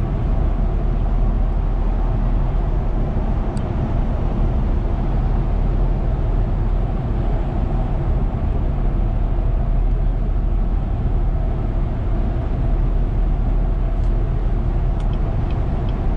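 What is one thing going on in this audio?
A car's engine and tyres rumble steadily from inside the car at highway speed.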